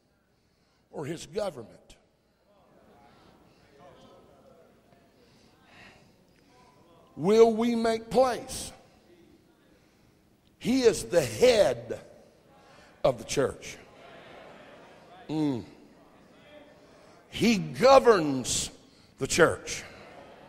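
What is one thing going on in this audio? A middle-aged man preaches with animation into a microphone, in bursts with pauses, in a large echoing hall.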